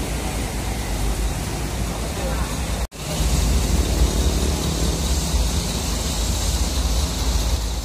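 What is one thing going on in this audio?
Motor traffic drives past on a road.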